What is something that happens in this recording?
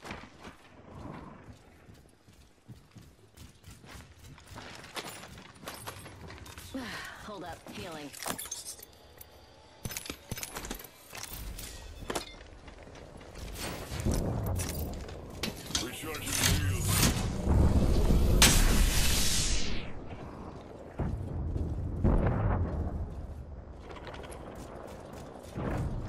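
Footsteps clatter quickly on a metal floor.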